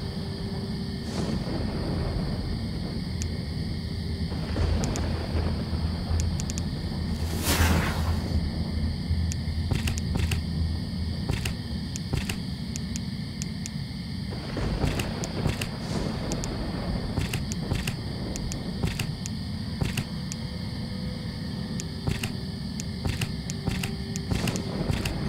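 Game tiles click as they are selected.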